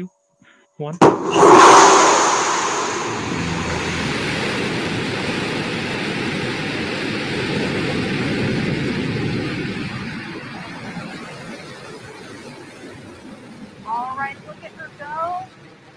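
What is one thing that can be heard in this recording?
A rocket engine ignites with a deep, thundering roar that slowly fades as the rocket climbs.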